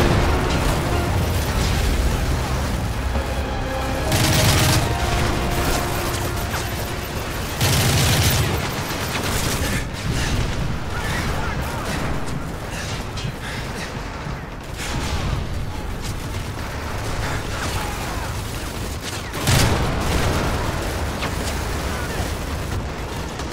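Distant battle noise rumbles steadily.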